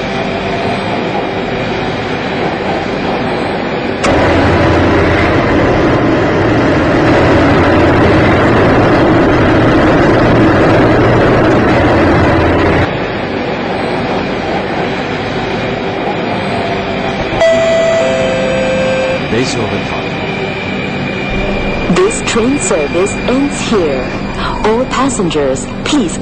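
A train rumbles steadily along its tracks, growing louder for a while before settling again.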